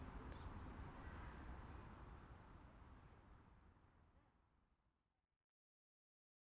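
An acoustic guitar is strummed and slowly fades out.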